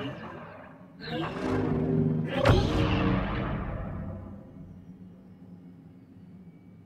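Lightsabers hum with a low, steady buzz.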